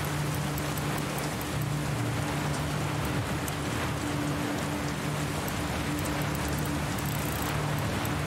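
A combination dial clicks as it turns.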